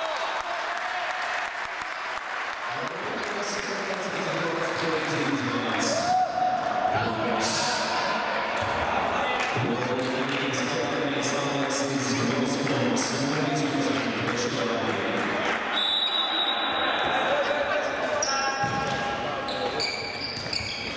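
Sports shoes squeak on a hall floor.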